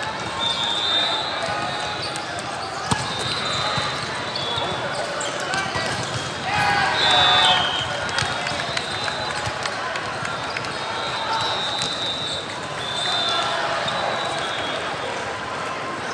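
A crowd of players and spectators chatter and call out throughout.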